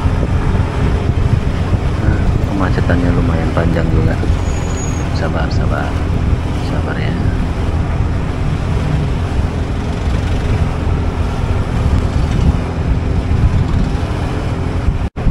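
A motorbike engine rumbles steadily up close.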